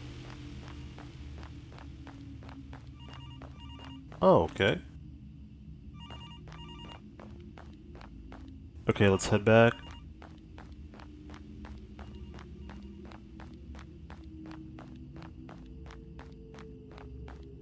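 Footsteps crunch steadily over leaves and stone paving.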